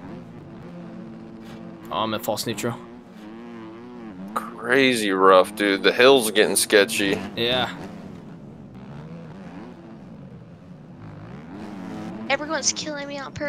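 A motorcycle engine revs and whines steadily.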